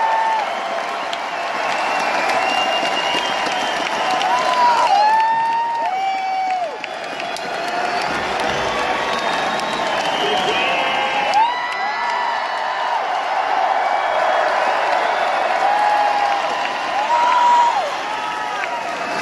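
An electric guitar plays a wailing, bending solo through loud speakers in a large echoing hall.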